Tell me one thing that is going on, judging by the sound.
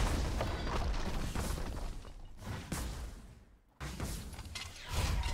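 Game spell and combat effects whoosh and crackle.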